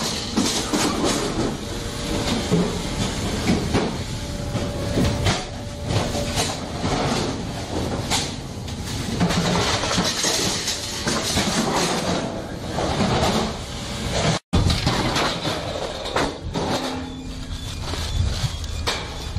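Factory machinery clanks and whirs loudly.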